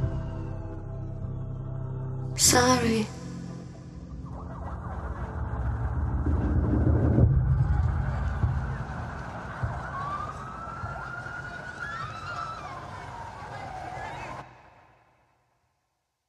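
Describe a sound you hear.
A song plays with a low beat and then quickly fades to silence.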